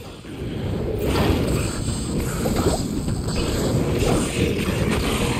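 Spells burst with a rushing hiss.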